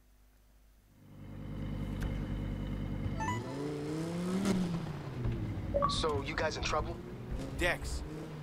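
A sports car engine idles and revs with a low rumble.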